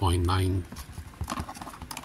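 A card rubs against cardboard as it is slid out.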